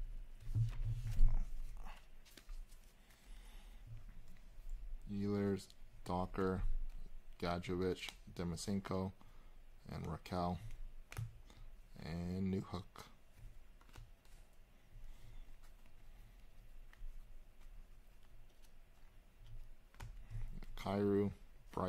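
Trading cards rustle and click as they are shuffled by hand.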